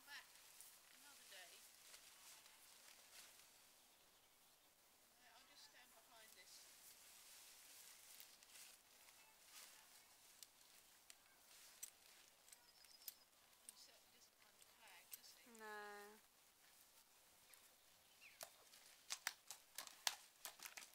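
A horse's hooves thud softly on grass.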